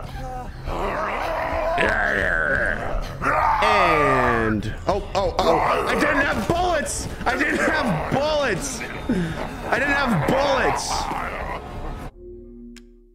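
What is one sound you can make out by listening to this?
A young man shouts and screams in panic into a close microphone.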